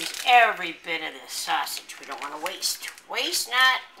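A plastic wrapper crinkles as it is peeled away.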